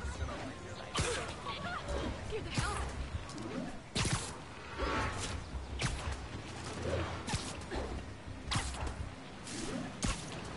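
Sharp whooshing snaps come again and again as a figure swings on web lines.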